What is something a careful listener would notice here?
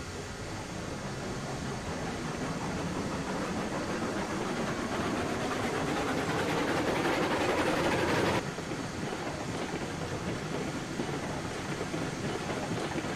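A small steam locomotive chuffs steadily as it rolls along.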